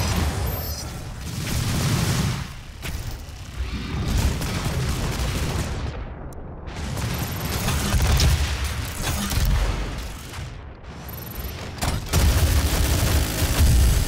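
Guns fire in loud bursts with deep booms.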